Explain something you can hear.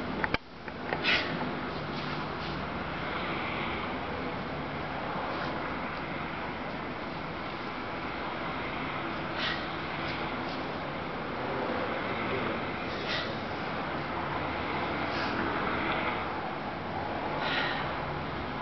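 Shoes scuff and squeak softly on a hard floor.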